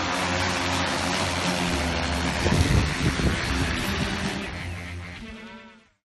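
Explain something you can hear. A drone's rotors whir loudly close by.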